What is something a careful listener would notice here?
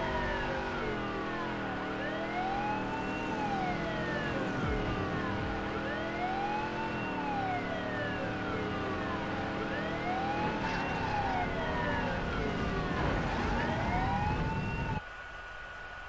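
A police siren wails in a rising and falling cycle.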